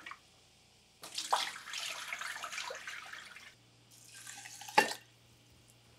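Water pours from a glass jug into a pot.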